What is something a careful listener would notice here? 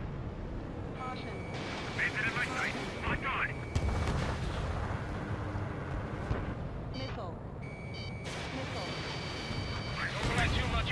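Electronic warning tones beep from the cockpit.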